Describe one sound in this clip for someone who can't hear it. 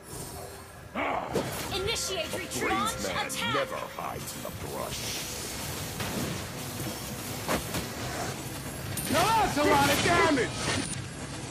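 Video game spell blasts and hits crackle and whoosh.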